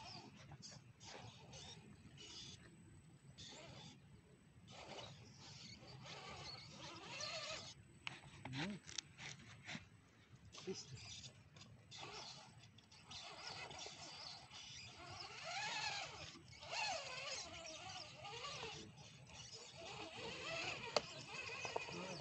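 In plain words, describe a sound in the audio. A small electric motor whines as a toy truck crawls over rocks.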